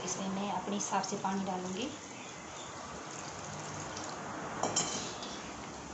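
Water pours into a metal bowl.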